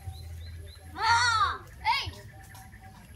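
Children call out loudly nearby.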